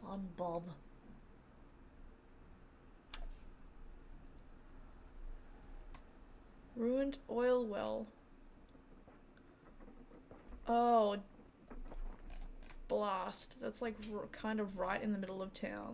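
A young woman talks casually into a close microphone, in short bursts with pauses.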